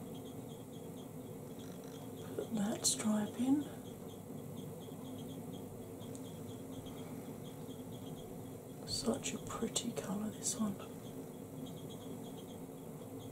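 A makeup brush softly brushes across skin.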